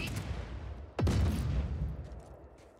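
Explosions boom from a video game's small speakers.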